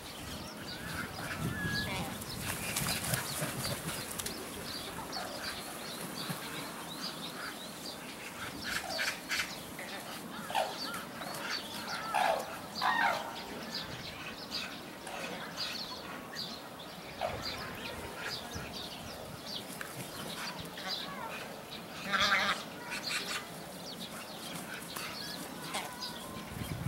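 Cranes flap their wings.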